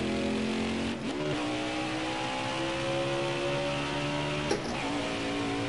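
A V8 stock car engine shifts gear.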